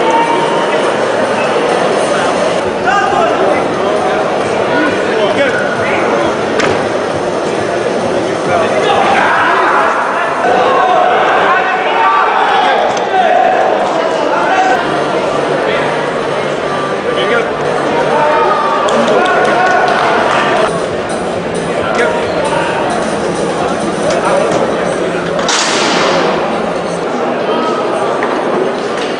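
A male referee calls out commands to the wrestlers.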